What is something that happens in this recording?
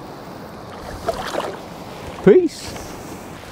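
A fish splashes in the water close by.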